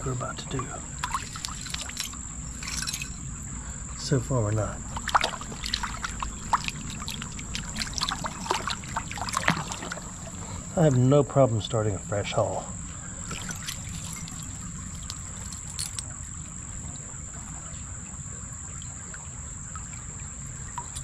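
A gloved hand scrapes and rummages through wet gravel and debris.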